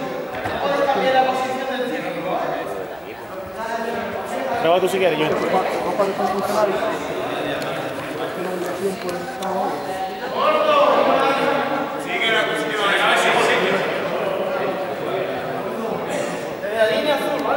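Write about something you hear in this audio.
A crowd of young men and women chatter and call out loudly in an echoing hall.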